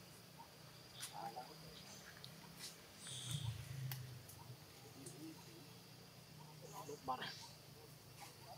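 A young monkey squeals in short bursts.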